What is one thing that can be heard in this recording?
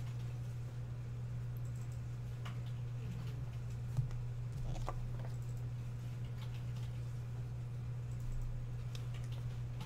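Plastic card sleeves rustle and click in hands.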